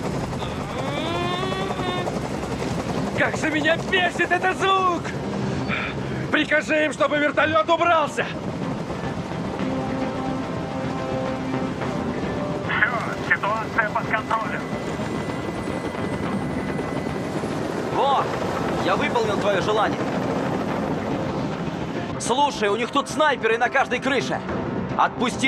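A helicopter hovers with a steady rotor drone.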